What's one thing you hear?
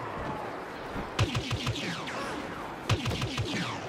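Laser guns fire in quick, sharp bursts.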